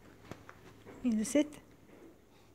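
A small dog gives a short, high whining yelp close by.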